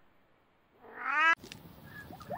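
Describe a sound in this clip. A cat meows loudly nearby.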